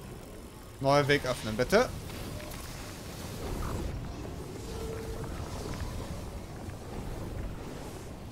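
Energy crackles and fizzes nearby.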